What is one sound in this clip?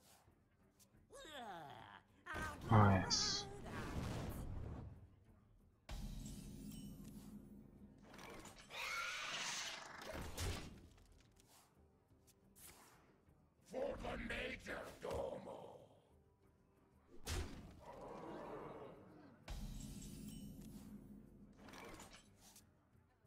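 Magical whooshes, chimes and thuds sound in bursts as playing cards are played.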